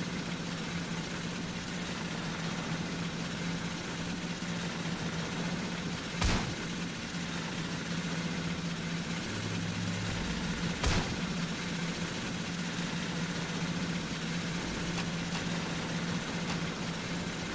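A tank engine rumbles steadily throughout.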